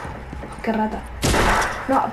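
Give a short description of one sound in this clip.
A game rifle fires a burst of shots.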